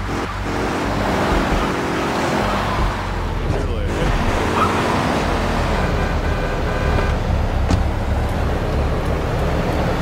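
A car engine hums steadily as a car drives along a street.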